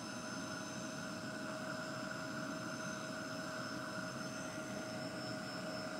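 A heat gun blows with a steady, loud whirring hum.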